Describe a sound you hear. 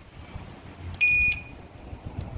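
An electric scooter gives a short beep.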